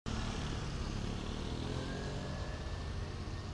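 A motorcycle engine rumbles as it rides slowly past.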